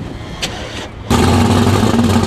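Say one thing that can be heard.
A supercharged twin-turbo V8 drag car engine fires up.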